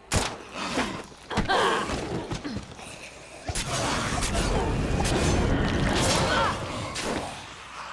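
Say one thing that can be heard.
Heavy blows thud against attackers.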